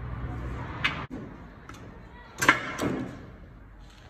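Metal parts clink and scrape.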